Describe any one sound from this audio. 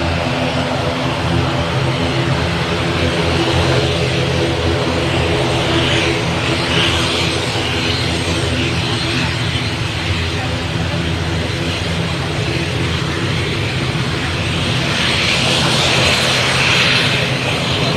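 A propeller plane's engines drone loudly and steadily close by.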